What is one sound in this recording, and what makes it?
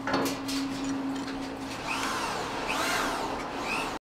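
Metal clinks as a young man tightens a pipe fitting with a wrench.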